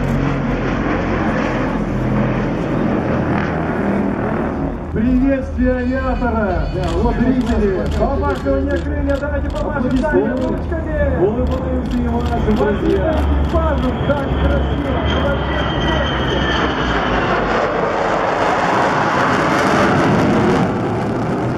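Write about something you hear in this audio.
A jet aircraft roars overhead, growing louder as it passes.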